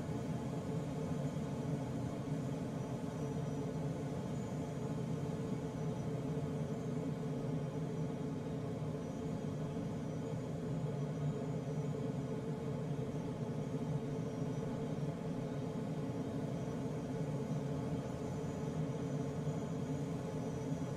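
Air rushes steadily past a glider's canopy.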